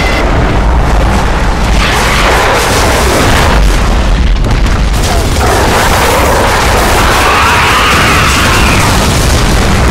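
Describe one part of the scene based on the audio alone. Creatures screech and roar.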